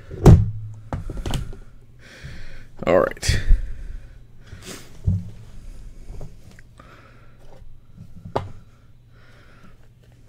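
A small cardboard box rustles and scrapes in hands.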